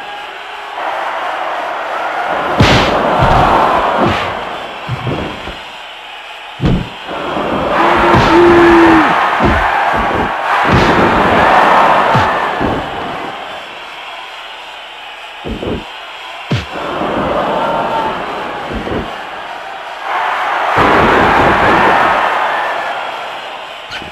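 A crowd cheers and roars in waves.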